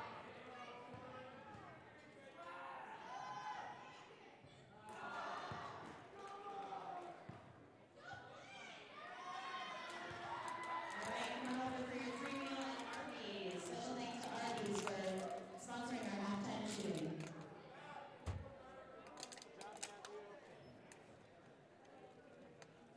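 A crowd of people chatters in a large echoing gym.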